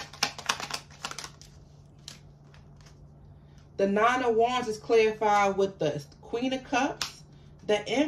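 Paper cards rustle and tap softly as a hand handles them.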